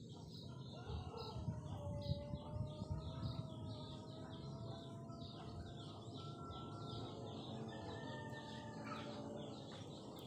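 A rooster clucks nearby.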